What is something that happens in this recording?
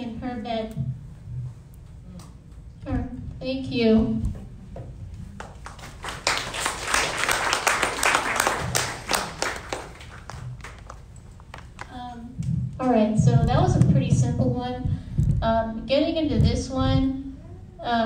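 A young child speaks haltingly into a microphone over loudspeakers in an echoing room.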